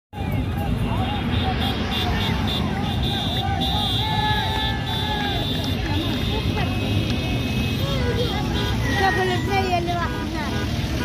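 Cars drive past on a road.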